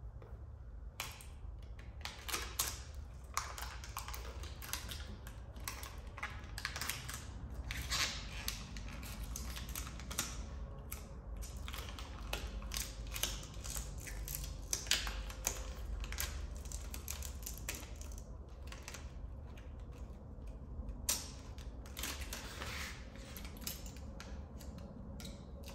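Plastic parts click and rustle under a man's fingers, close by.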